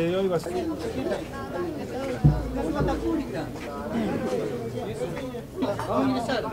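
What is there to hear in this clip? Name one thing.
A crowd of men murmur and talk over one another.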